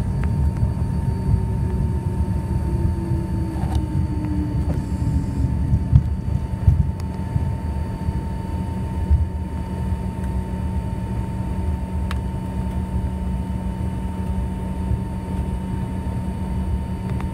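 Aircraft wheels rumble and thump over a runway.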